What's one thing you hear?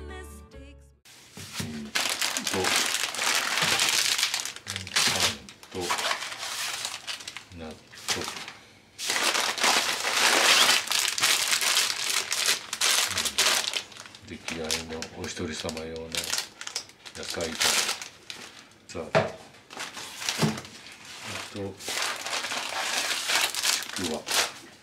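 A plastic shopping bag rustles and crinkles close by.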